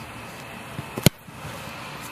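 A foot kicks a football with a sharp thump.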